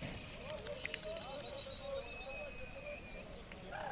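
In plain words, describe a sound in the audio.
Many pigeons flap their wings as they take off.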